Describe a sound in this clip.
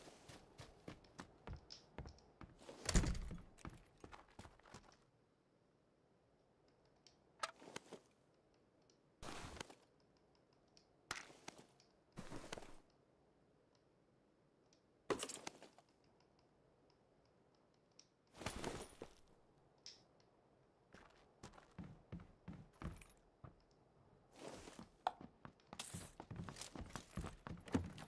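Footsteps thud across wooden floorboards.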